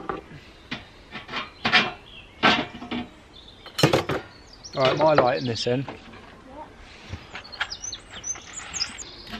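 Pieces of wood knock together as they are stacked close by.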